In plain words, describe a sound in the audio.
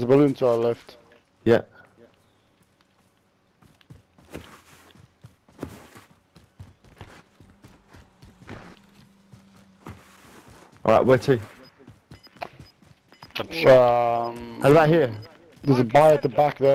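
Footsteps run through dry grass.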